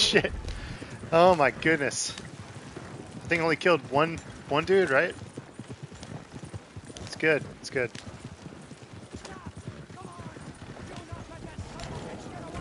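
Horse hooves clop steadily on a dirt track.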